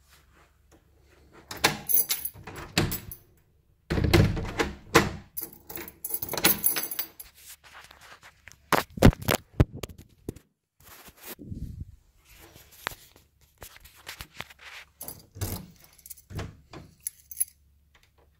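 A door handle clicks and rattles as it is turned.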